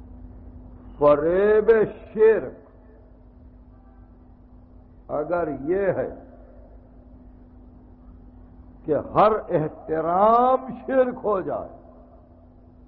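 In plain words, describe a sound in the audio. An elderly man speaks slowly and with feeling, heard through an old recording, pausing between phrases.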